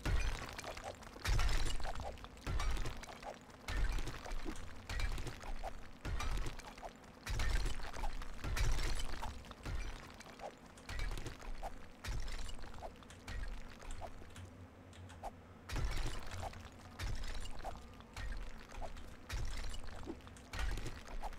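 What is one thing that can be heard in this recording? A pickaxe strikes rock again and again with heavy thuds.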